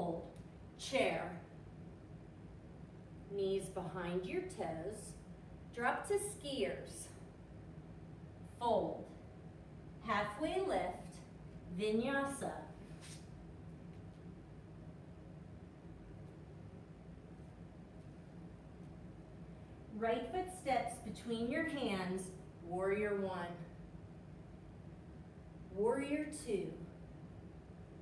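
A woman speaks calmly, giving instructions in a room with a slight echo.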